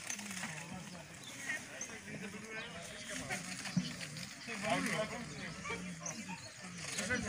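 Several women talk casually outdoors, a short distance away.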